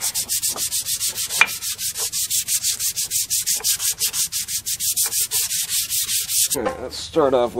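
Sandpaper rasps quickly back and forth on a wooden handle.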